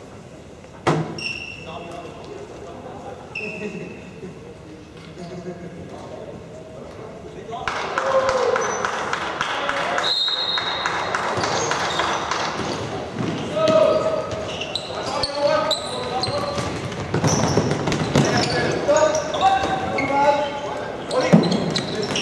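Sneakers squeak sharply on a hard floor in a large echoing hall.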